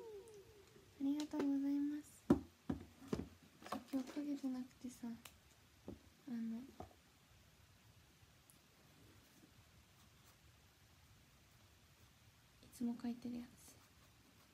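A young woman talks softly and casually close by.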